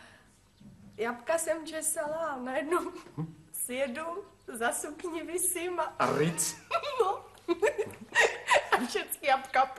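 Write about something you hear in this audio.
A young woman talks and laughs nearby.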